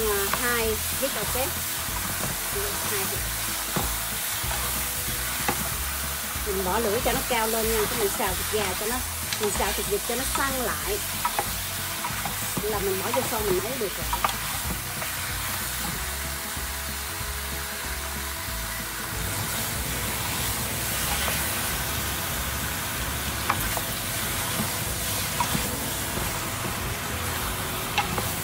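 A spatula scrapes and stirs food in a metal pan.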